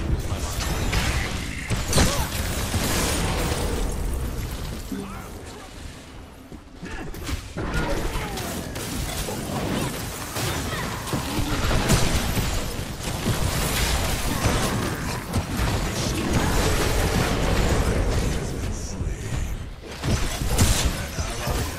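Heavy blows thud in quick bursts.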